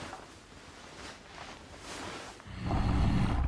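A young woman laughs softly close by.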